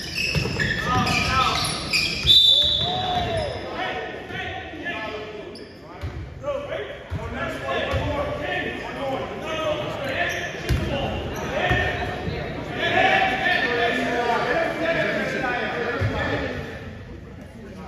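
Voices of spectators and players chatter and shout in a large echoing gym.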